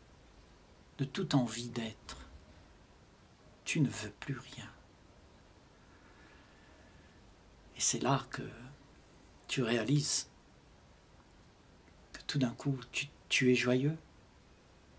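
An elderly man speaks calmly and slowly, close to the microphone, with long pauses.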